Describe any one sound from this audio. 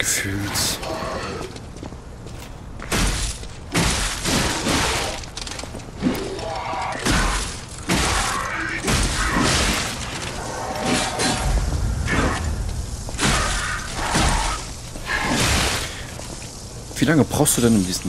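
Weapons swing and strike with heavy, sharp impacts.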